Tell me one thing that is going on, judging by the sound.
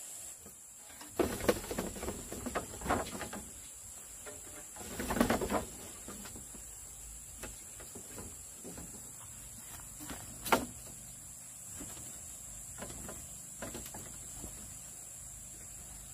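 Bamboo slats rattle and tap as a panel is fitted into a frame.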